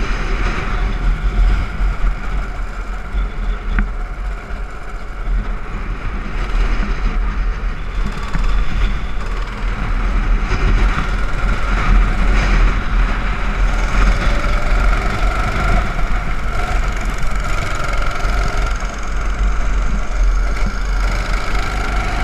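A go-kart engine buzzes loudly up close, revving up and down through the turns.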